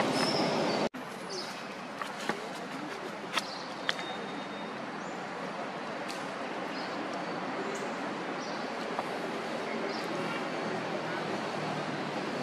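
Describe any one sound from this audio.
A monkey chews crunchy fruit with soft crunches.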